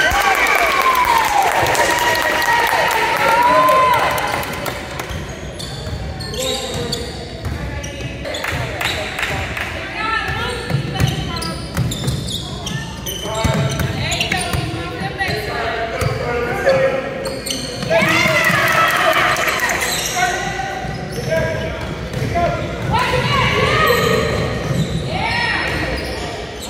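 Spectators shout and cheer loudly in a large echoing gym.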